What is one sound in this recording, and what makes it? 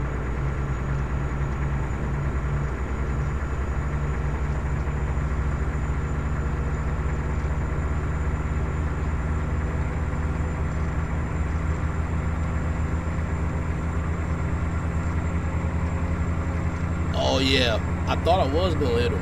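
A truck's diesel engine rumbles steadily while driving.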